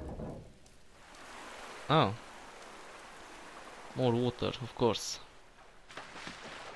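Water pours in a thin stream and splashes into a pool, echoing in a large stone chamber.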